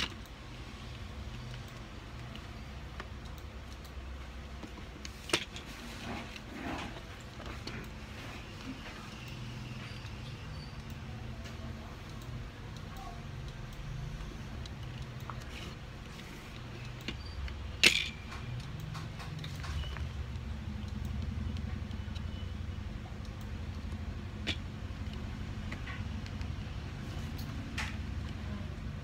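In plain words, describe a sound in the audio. Plastic toy bricks click and clatter as they are snapped together close by.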